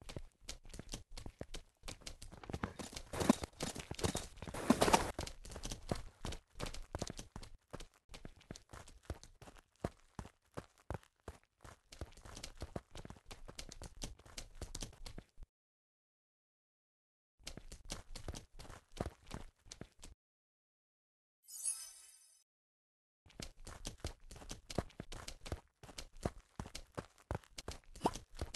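Horse hooves clop.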